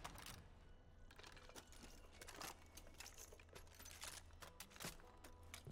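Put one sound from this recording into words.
A heavy gun clanks and clicks as it is swapped and readied.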